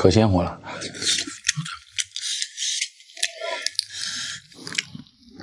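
Foil crinkles and rustles.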